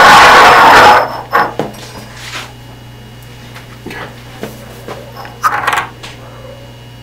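Plastic cups are set down and slid on a hard countertop with light knocks.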